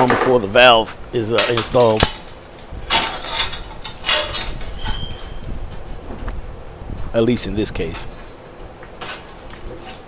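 A metal cover plate scrapes and clicks against a tiled wall.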